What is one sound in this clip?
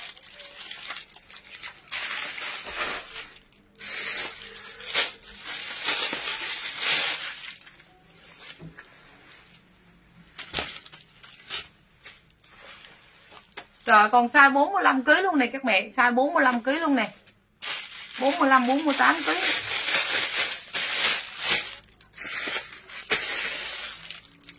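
Clothes rustle and crinkle close by.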